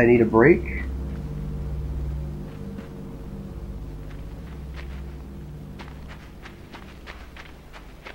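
Light footsteps patter quickly over the ground.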